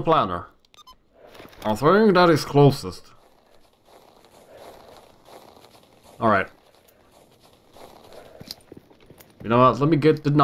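Footsteps crunch over snow.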